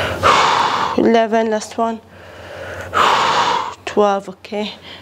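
A young woman speaks with energy, close by.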